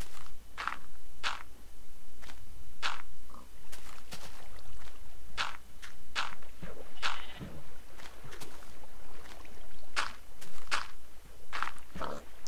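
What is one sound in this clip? Footsteps thud on grass and earth at a steady walking pace.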